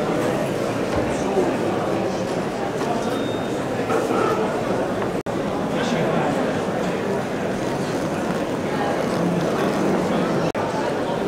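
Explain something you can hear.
A crowd of people chatters in a busy indoor hall.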